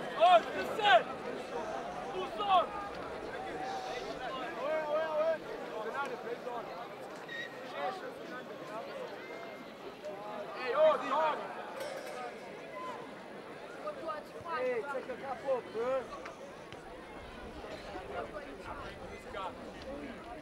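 A crowd of boys sings and chants loudly outdoors.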